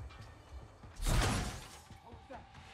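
An explosion bursts with a loud, deep boom.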